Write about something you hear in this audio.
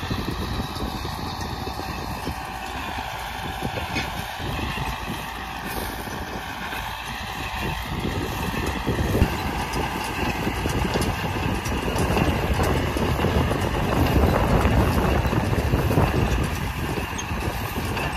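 A tractor engine rumbles steadily, growing louder as it comes close.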